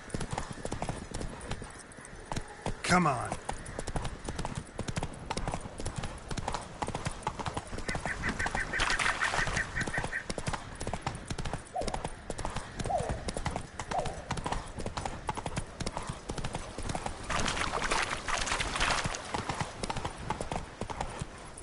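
Horse hooves thud rapidly on soft ground at a gallop.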